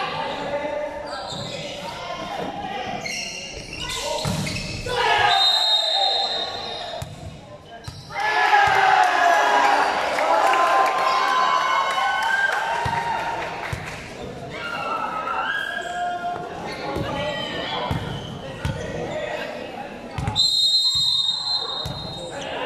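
A crowd of young people chatter and shout in a large echoing hall.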